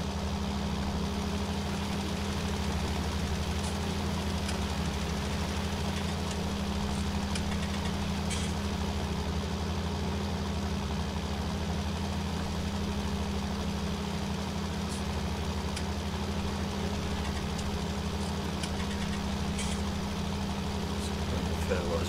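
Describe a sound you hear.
A fertiliser spreader rattles as it scatters granules.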